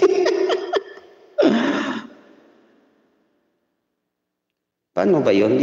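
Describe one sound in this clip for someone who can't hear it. A man speaks and laughs close into a microphone, in short bursts with pauses.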